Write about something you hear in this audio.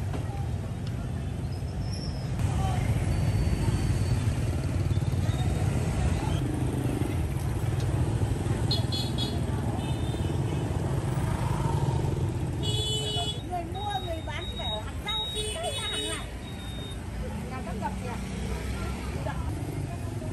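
Many voices chatter in the background.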